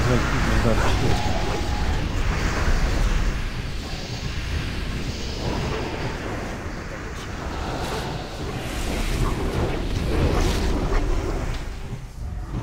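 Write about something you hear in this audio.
Magic spells whoosh and crackle in a busy fantasy battle.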